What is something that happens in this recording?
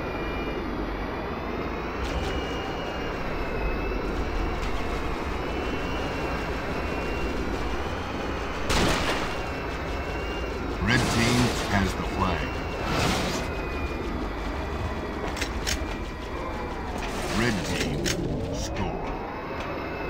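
A vehicle engine hums steadily as it hovers along.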